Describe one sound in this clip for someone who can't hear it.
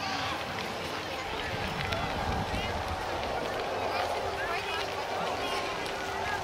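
Children shout and squeal at a distance.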